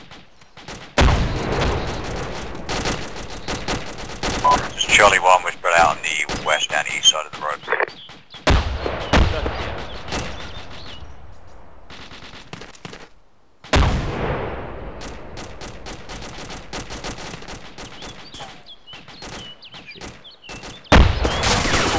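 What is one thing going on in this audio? Gunshots crack loudly, each followed by a rolling echo outdoors.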